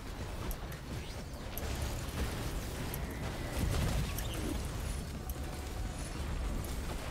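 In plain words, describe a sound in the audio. Laser shots zap and crackle in rapid bursts.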